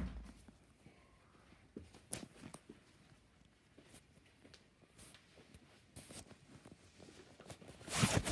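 Fabric rustles and brushes close to the microphone.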